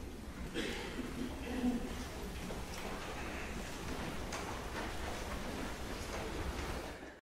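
Clothing rustles and feet shuffle as a group of people stands up in a large echoing hall.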